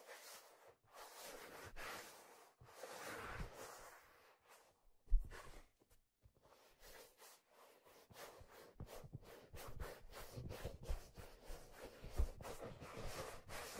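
A stiff leather hat rustles and creaks as fingers rub it close to a microphone.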